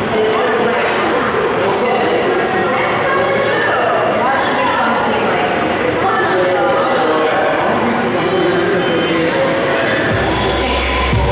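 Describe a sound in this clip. Music with singing plays loudly through large speakers in an echoing hall.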